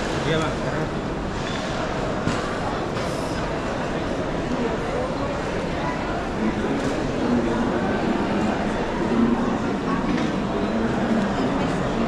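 Footsteps and rolling suitcase wheels clatter across a hard floor.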